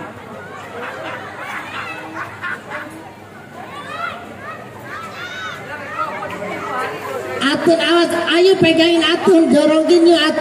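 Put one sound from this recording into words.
A crowd of adults chatters in the background.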